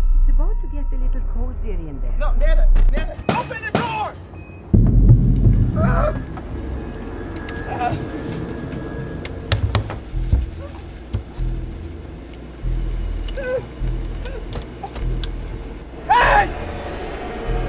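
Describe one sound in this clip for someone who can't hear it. A young man gasps and groans in distress.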